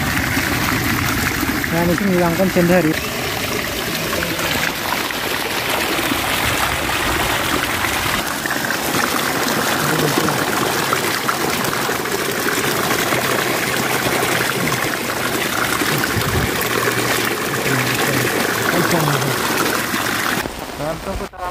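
Water gushes and splashes loudly over a net.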